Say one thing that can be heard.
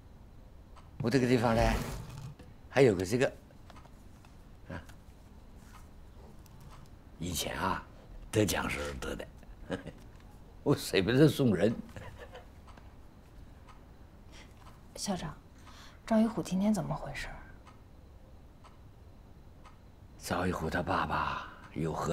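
An elderly man speaks calmly and softly nearby.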